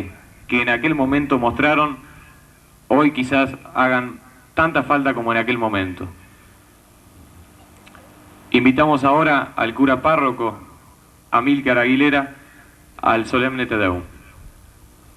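A young man speaks firmly into a microphone, heard through a loudspeaker outdoors.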